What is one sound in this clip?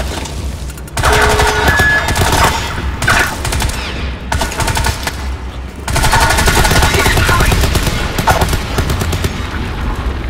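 Gunfire rattles in bursts amid a battle.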